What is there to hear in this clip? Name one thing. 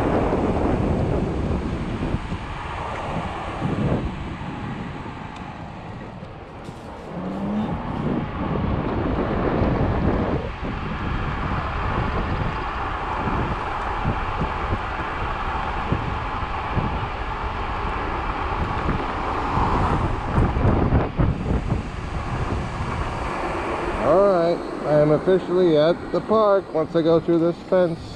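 Wind buffets and rumbles as an electric scooter rides along a road.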